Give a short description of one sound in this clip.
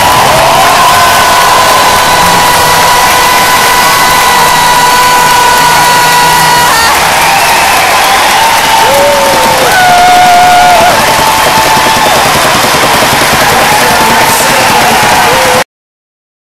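A huge crowd roars and cheers loudly in a vast echoing stadium.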